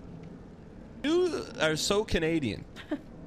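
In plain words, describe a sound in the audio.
A young woman speaks close into a microphone.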